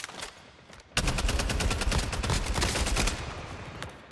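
Rapid gunfire rattles in loud bursts.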